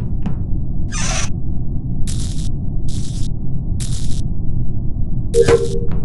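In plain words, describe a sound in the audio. Short game sound effects click as wires are connected.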